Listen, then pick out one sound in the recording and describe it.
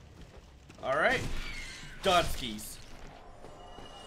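A sword swings and strikes with a thud.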